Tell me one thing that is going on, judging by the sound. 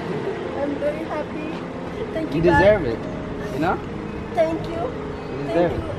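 A young man speaks and laughs close by.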